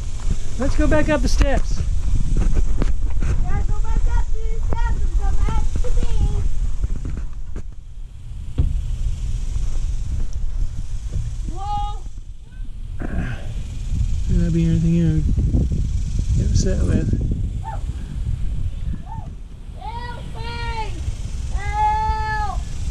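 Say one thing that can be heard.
A small child babbles and squeals nearby.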